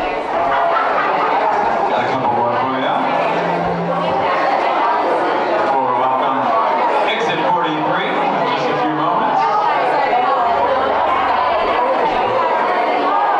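A live band plays loudly on stage.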